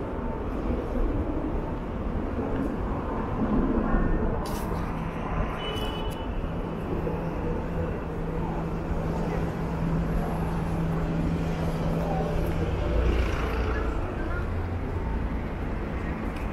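Traffic hums steadily along a city street.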